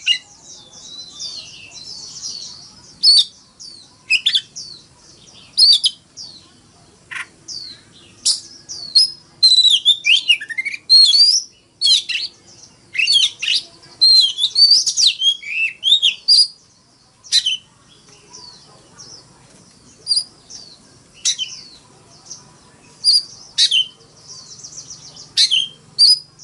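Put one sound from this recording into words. A songbird sings loud, varied whistles and chirps close by.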